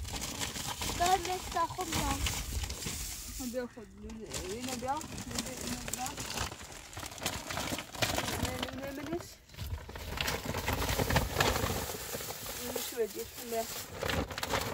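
A young child speaks in a high voice nearby.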